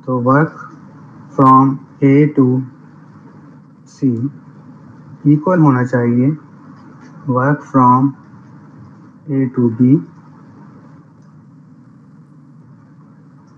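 A pen scratches softly on paper.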